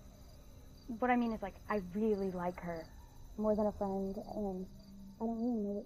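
A woman speaks quietly and calmly up close.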